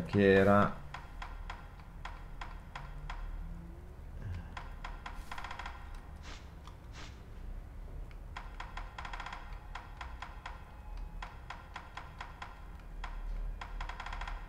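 Soft menu clicks tick again and again as a selection moves through a list.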